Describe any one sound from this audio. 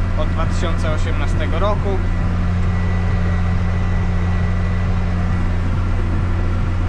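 A tractor engine rumbles steadily and loudly from inside the cab.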